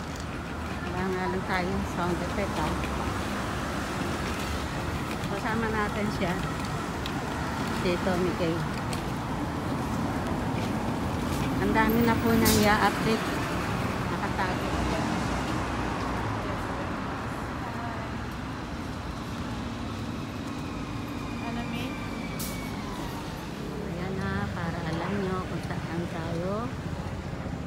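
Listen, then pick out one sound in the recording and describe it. Women talk nearby in a crowd of pedestrians.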